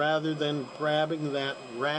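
A machine's button clicks softly under a finger.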